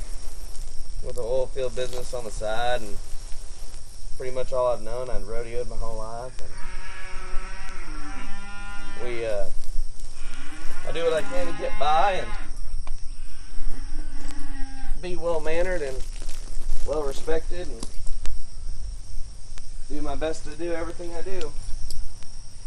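A man speaks calmly and clearly, close by, outdoors.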